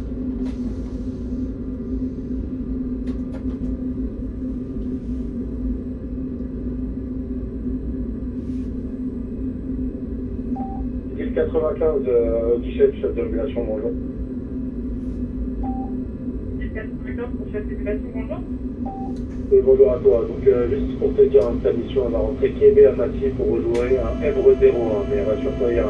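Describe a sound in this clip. A train's engine hums steadily at idle.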